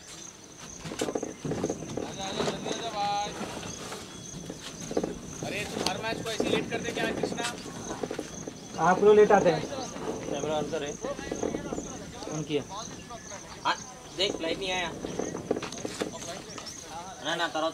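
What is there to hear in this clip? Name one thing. Men call out and talk across an open field.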